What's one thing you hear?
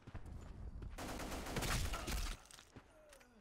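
A rifle fires a rapid burst of loud shots.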